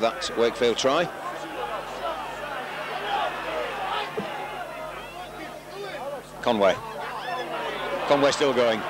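A large crowd murmurs and shouts throughout.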